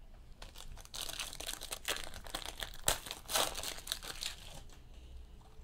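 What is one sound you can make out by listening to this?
Foil wrapping crinkles and tears as a pack is opened.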